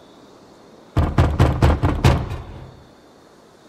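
Heavy knocks strike a wooden door.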